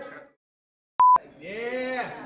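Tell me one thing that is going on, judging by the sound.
A steady electronic test tone beeps briefly.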